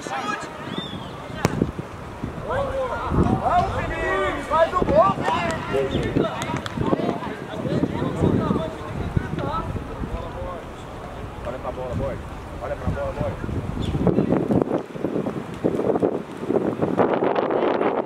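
Young players shout to each other across an open outdoor pitch.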